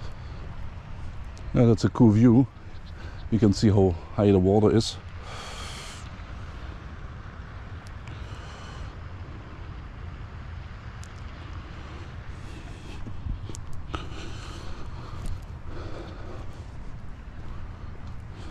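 Wind gusts outdoors, rumbling steadily.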